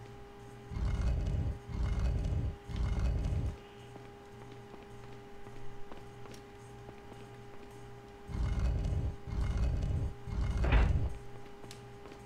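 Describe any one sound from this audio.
A heavy stone block grinds and scrapes across a stone floor in short pushes.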